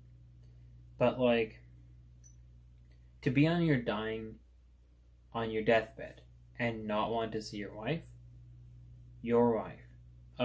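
A young man speaks calmly and close to a microphone, in short phrases with pauses.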